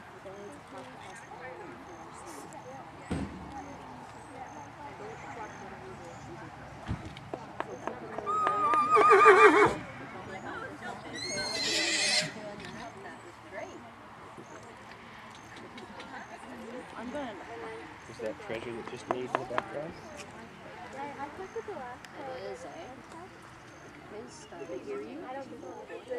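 A horse's hooves thud softly on dirt at a steady trot.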